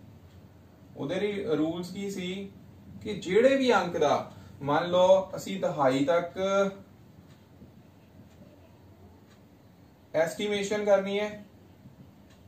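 A man speaks calmly, explaining in short phrases.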